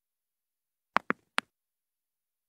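A mouse button clicks a few times.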